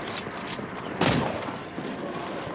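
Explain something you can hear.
An explosion bursts with a loud crack.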